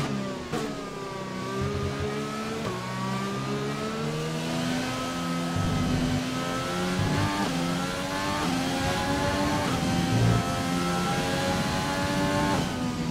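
A racing car engine screams, its pitch rising as it speeds up and dropping with each gear change.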